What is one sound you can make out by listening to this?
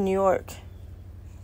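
A squeaky dog toy squeaks.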